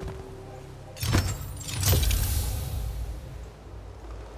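A magical shimmer whooshes and sparkles as an item is picked up.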